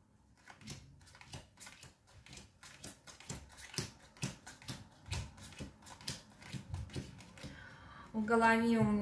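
Playing cards slap and flick softly onto a table.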